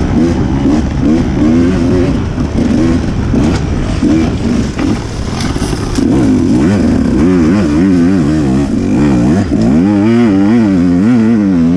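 A dirt bike engine revs up and down loudly close by.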